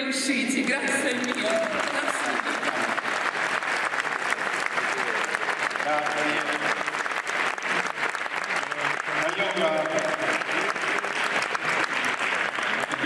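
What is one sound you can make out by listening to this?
An audience applauds loudly and steadily.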